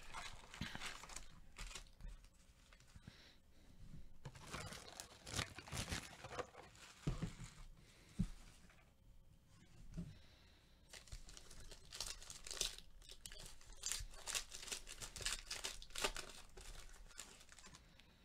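Foil wrappers crinkle and rustle as card packs are handled and torn open.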